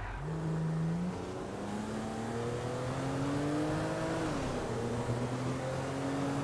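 A car engine hums and revs, rising in pitch as it speeds up, then dropping as it shifts gear.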